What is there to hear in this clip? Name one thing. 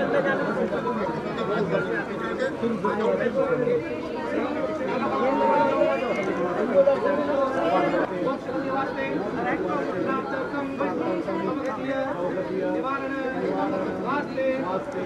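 A crowd of men and women murmurs and talks all around, close by.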